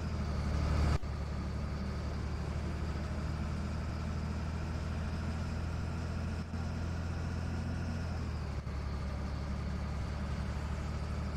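A bus engine hums steadily at cruising speed.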